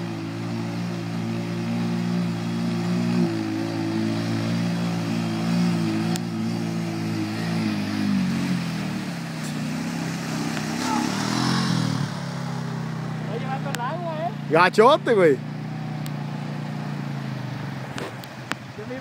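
A quad bike engine roars close by, then fades into the distance.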